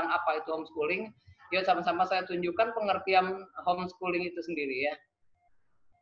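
A man speaks steadily over an online call.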